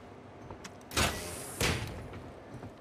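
A heavy metal door creaks and swings open.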